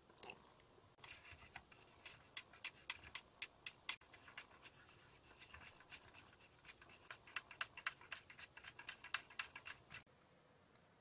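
A wooden stick stirs and taps sticky gel in a plastic tray with quick clicks.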